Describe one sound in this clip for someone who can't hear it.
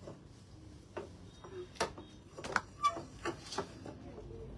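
A plastic chair knocks and clatters as it is set down on a hard floor.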